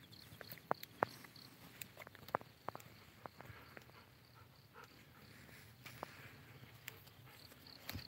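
A dog's paws patter on a dirt path.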